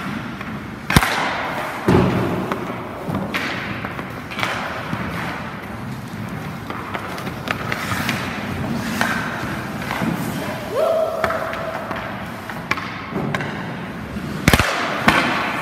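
A hockey stick cracks against a puck.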